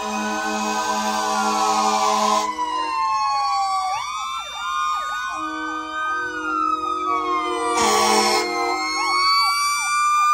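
Vehicle horns blare loudly in long blasts.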